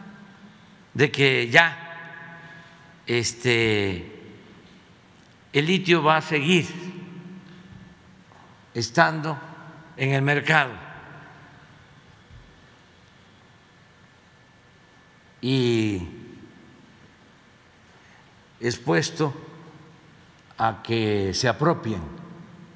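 An elderly man speaks calmly into a microphone, in short phrases with pauses, in a reverberant hall.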